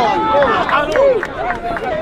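A man claps his hands nearby.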